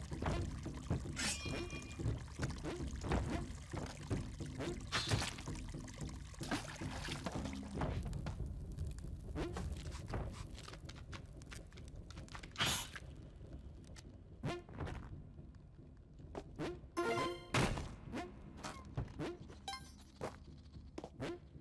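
Soft game music plays steadily throughout.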